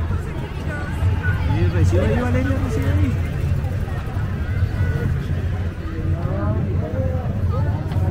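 Young women cheer and call out cheerfully while walking past.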